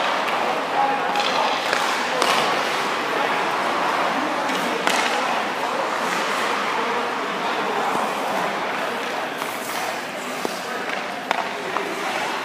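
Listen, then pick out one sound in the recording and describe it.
A man talks calmly nearby in a large echoing rink.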